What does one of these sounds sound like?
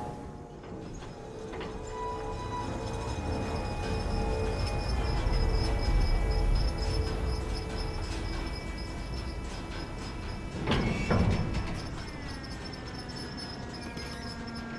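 A crane hums as it lifts a swaying cargo container.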